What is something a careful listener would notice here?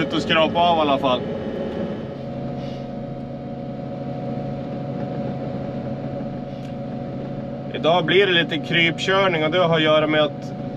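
A heavy diesel engine hums steadily close by.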